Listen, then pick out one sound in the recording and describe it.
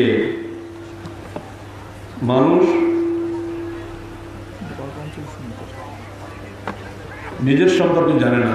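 A man chants loudly through a microphone and loudspeakers in long drawn-out phrases, echoing outdoors.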